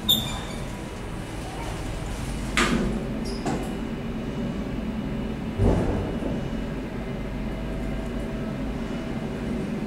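A small passenger lift hums as it travels.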